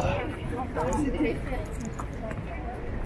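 Women talk with animation nearby, outdoors.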